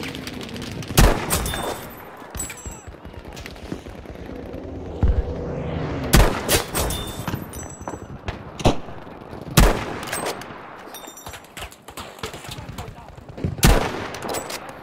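A rifle fires loud, sharp shots that echo.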